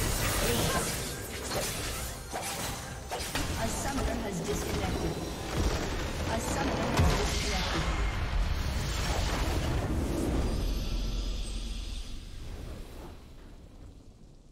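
A huge magical blast roars and rumbles, then fades away.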